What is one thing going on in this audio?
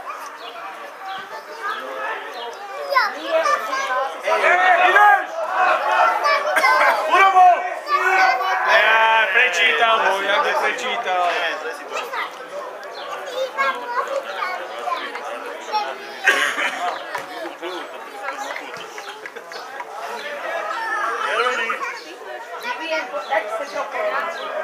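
Men in a small crowd nearby talk loudly with animation.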